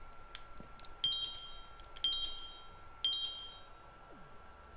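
Short high electronic beeps tick off a countdown, one each second.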